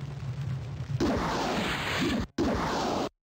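A magic spell crackles and hisses.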